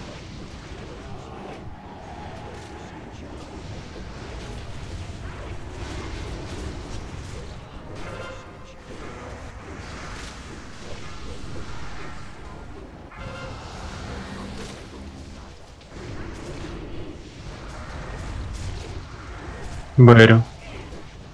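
Magical spell effects whoosh and crackle amid a busy battle.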